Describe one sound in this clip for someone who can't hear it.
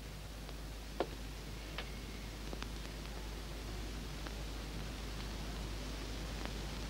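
Footsteps tap on a floor.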